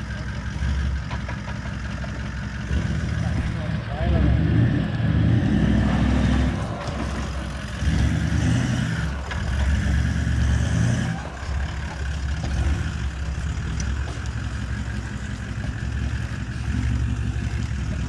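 A diesel engine rumbles and revs as an off-road vehicle climbs a dirt track.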